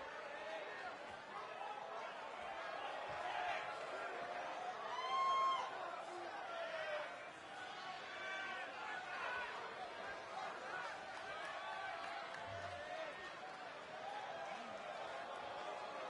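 A large crowd murmurs and cheers in a big echoing hall.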